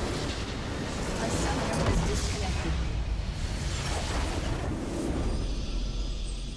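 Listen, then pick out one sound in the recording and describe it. A structure in the game explodes and crumbles.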